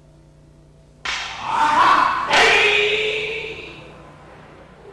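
A man shouts loudly with a sharp cry in an echoing hall.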